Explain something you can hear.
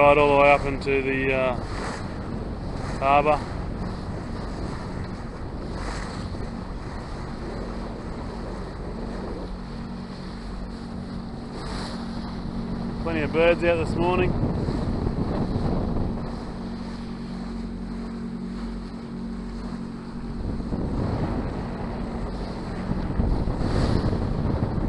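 Water washes and splashes against a boat's hull.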